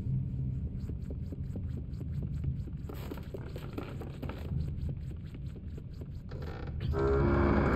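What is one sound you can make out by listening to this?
Small quick footsteps patter across a wooden floor.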